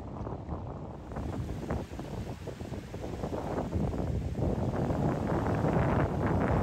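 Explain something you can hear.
Water splashes and hisses under a fast-moving boat's hull.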